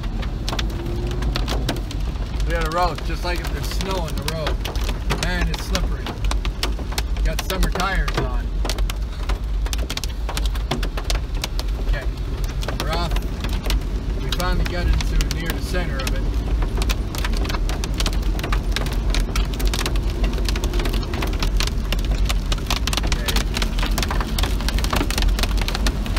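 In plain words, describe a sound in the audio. Hail drums hard on a car's roof and windshield.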